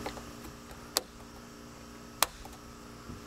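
A plastic mirror clicks as hands adjust it.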